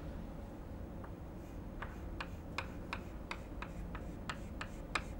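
Chalk taps and scrapes rapidly on a blackboard.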